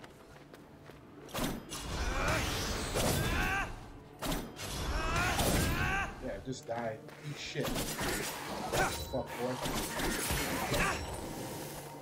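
Swords clash and whoosh in a video game fight.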